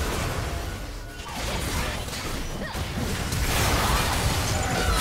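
Magic blasts and explosions crackle and boom in a fast battle.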